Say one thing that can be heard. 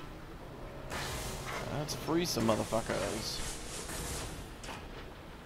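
A gas sprayer hisses loudly in bursts.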